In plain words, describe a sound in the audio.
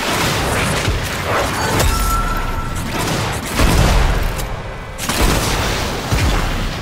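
Energy blasts crackle and boom in a game fight.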